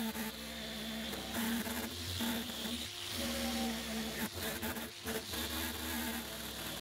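An electric sander whirs and grinds against sheet metal.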